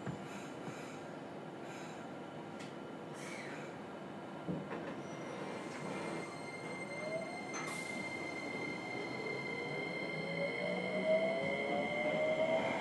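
Train wheels rumble steadily over the rails.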